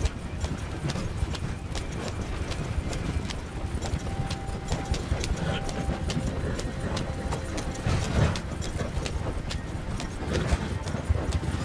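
A horse-drawn wooden wagon rumbles and rattles over rough grassland.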